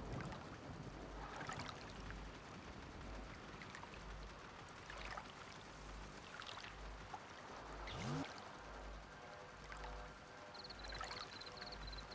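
Water laps gently nearby.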